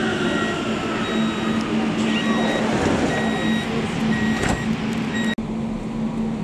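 A train's door warning beeps repeatedly.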